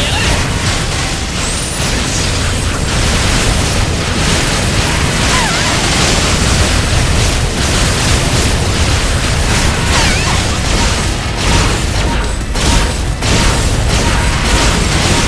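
Explosions boom and crackle in rapid succession.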